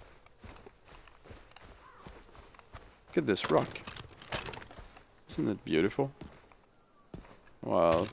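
Footsteps crunch over grass and dirt.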